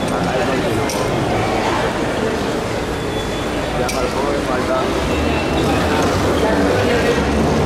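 An escalator hums and rattles steadily.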